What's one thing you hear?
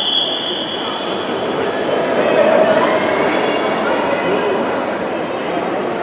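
Water splashes as swimmers dive in.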